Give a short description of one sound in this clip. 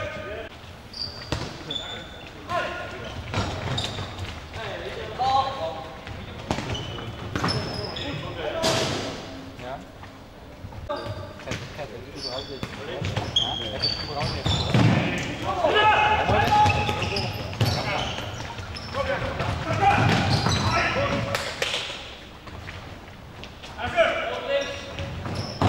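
Men shout and call out to each other across an echoing hall.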